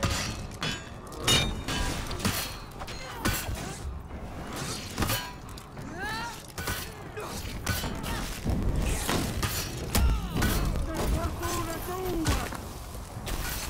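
Fighters grunt and shout as they battle.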